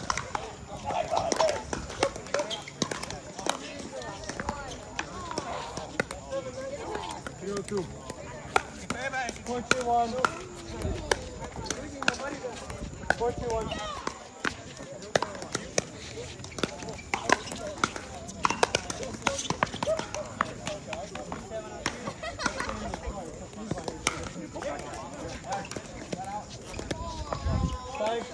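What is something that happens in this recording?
Paddles pop sharply against a plastic ball in quick rallies, outdoors.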